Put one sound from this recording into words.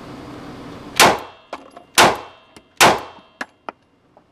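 Pistol shots ring out loudly, one after another.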